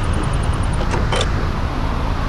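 A short click sounds as a menu opens.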